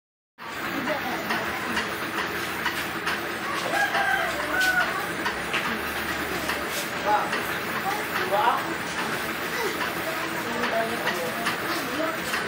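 An exercise machine creaks and clicks rhythmically.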